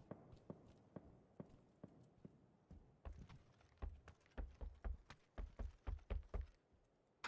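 Footsteps thud quickly across a wooden floor.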